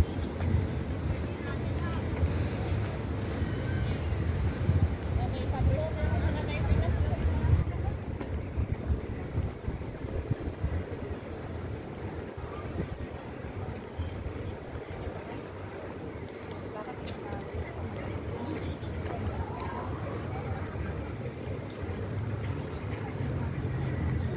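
People talk in the distance outdoors.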